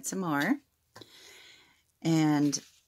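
Lace and ribbon rustle softly between fingers.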